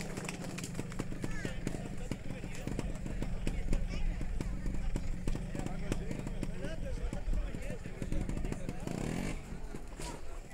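A trials motorcycle engine chugs and revs up close.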